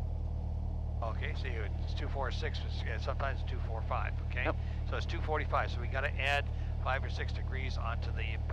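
A man speaks over a headset intercom.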